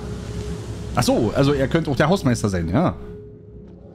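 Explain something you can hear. A man speaks with animation into a headset microphone.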